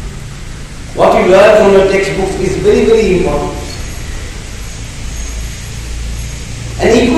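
An elderly man speaks into a microphone over a loudspeaker, slowly and calmly.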